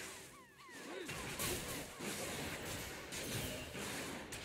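Magic spells burst and crackle in quick blasts.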